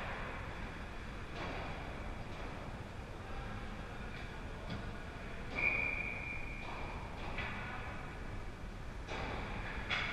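Skates scrape and hiss on the ice in a large echoing rink.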